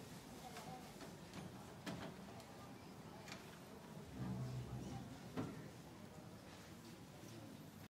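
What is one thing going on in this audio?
Footsteps tap on a hard floor some distance away.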